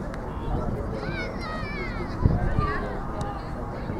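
Spectators shout and cheer from a distance outdoors.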